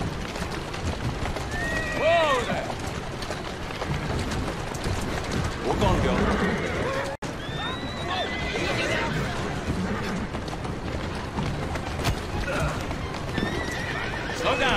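Horses' hooves clatter on cobblestones.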